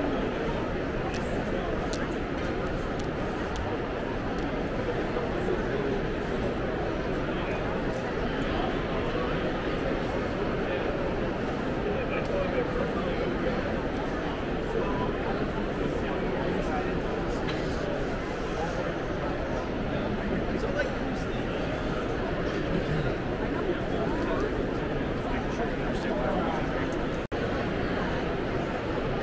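A crowd of many people chatters in a large echoing hall.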